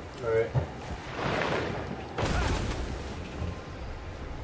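Wind rushes loudly past a rider falling through the air.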